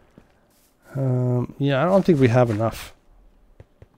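A man speaks with animation, close to a microphone, drawing out his words.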